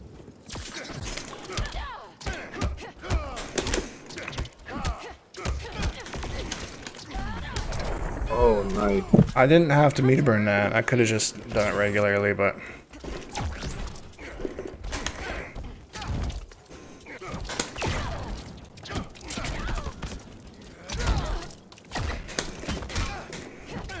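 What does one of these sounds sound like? Punches and blows land with sharp thuds in a fight game.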